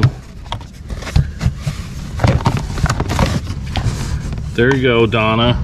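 Items rattle and clack as hands rummage through a cardboard box.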